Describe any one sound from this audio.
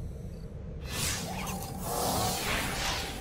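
A shimmering electronic whoosh rises.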